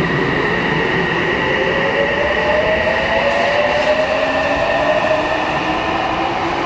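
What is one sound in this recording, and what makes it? A subway train rushes past close by with a loud rumble.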